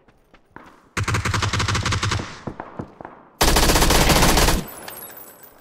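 Bursts of automatic gunfire ring out loudly.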